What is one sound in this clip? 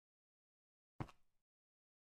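A cake block is set down with a soft thud.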